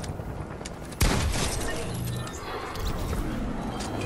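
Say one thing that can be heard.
A gun fires a burst of loud shots.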